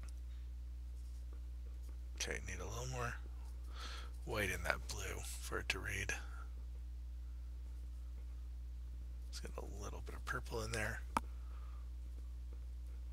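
A paintbrush dabs and strokes paint on a canvas.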